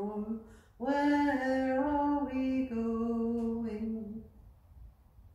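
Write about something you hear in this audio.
A middle-aged woman sings slowly into a microphone.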